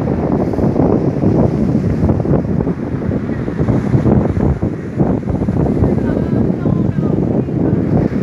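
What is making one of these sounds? Foaming surf washes over a stony shore.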